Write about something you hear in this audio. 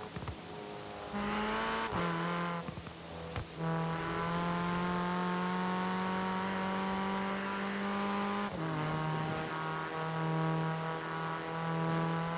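A car engine roars at high revs, dropping in pitch briefly with each gear change.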